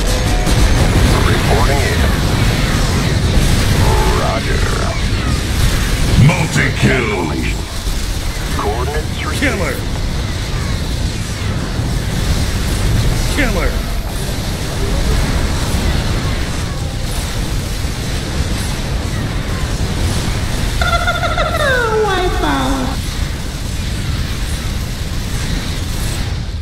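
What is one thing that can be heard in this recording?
Rapid gunfire and small blasts crackle in a busy battle.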